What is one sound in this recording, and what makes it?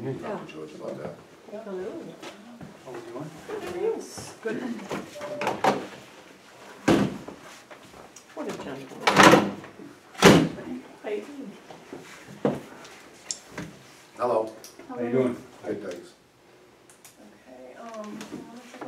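Adults talk in a small room with light echo.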